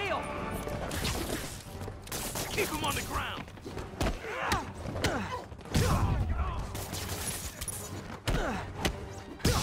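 Fast whooshes sweep past.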